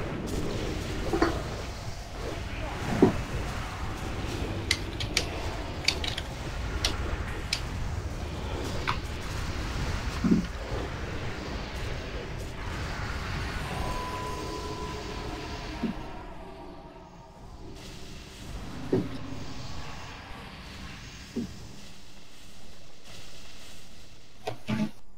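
Game spells and weapon hits crash and zap during a battle.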